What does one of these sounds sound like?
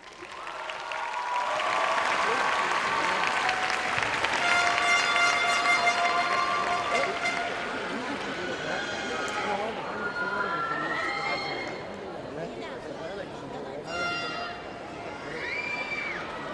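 Young women cheer and whoop loudly.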